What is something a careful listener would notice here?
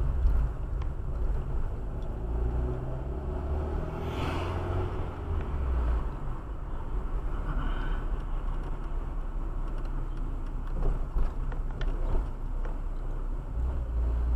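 Tyres rumble and bump over a rough road.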